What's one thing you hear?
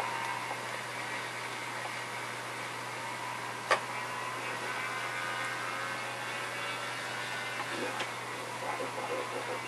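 A small model plane engine buzzes steadily overhead.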